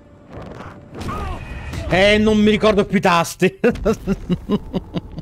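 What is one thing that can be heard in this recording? A man laughs loudly into a close microphone.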